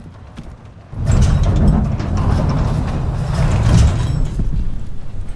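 A loud blast roars with crackling debris, then rumbles away.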